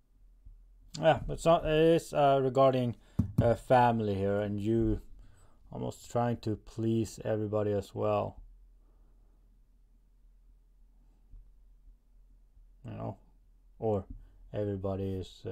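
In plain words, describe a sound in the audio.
A man speaks calmly and close to a microphone.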